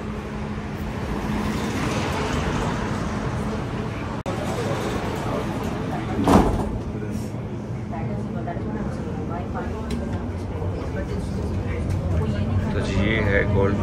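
A train rumbles and hums steadily along its track.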